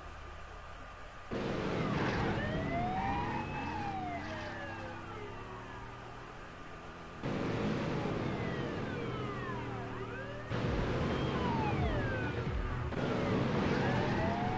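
A car engine roars at speed.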